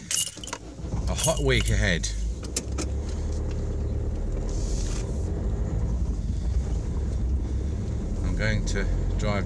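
A car engine hums low and steady while driving.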